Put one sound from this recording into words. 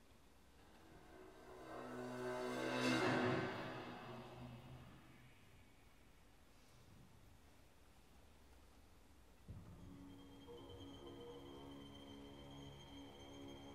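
An orchestra plays softly.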